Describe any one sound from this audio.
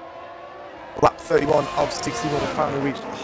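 A racing car roars loudly past close by.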